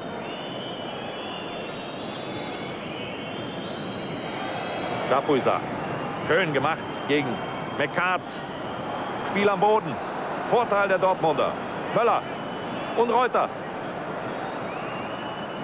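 A large crowd roars and chants in a stadium.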